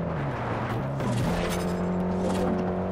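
A car smashes through a roadside sign with a crunch.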